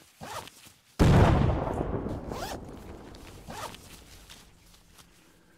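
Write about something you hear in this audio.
A rifle shot booms and echoes away slowly.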